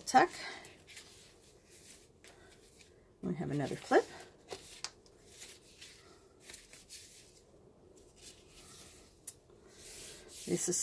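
Paper pages rustle and flip as they are turned by hand.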